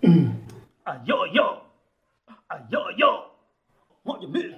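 A second man speaks from close by.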